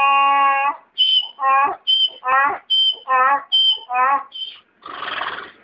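A donkey brays.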